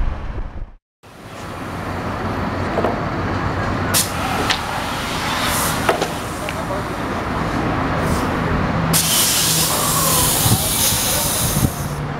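A diesel truck engine idles and revs nearby.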